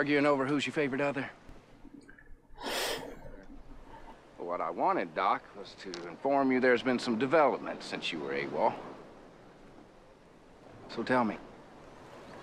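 A man speaks calmly, in short teasing phrases.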